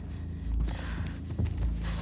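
A young woman grunts in pain.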